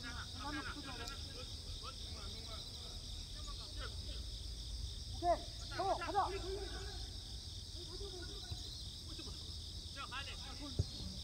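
Young men shout to each other far off across an open field.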